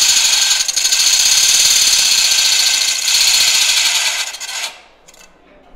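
A pedal-driven pump whirs and hisses loudly.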